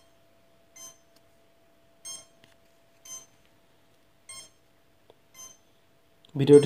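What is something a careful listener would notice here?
A small electronic board beeps briefly several times.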